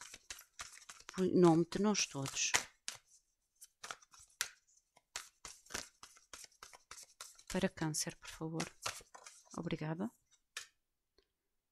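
Playing cards are shuffled with quick, crisp riffling.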